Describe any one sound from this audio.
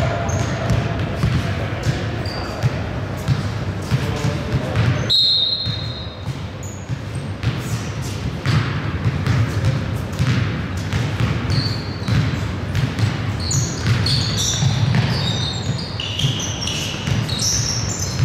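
Sneakers squeak sharply on a wooden floor.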